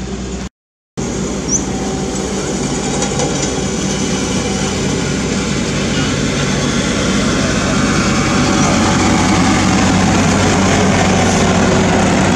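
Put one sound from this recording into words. Heavy steel rollers crunch slowly over fresh asphalt.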